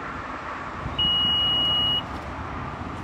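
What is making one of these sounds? A car's power tailgate gives a steady electronic beep.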